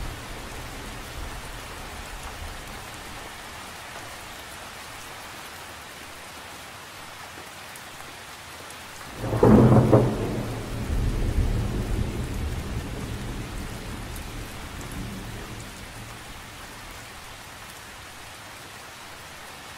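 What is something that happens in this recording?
Light rain patters steadily on a lake's surface, outdoors.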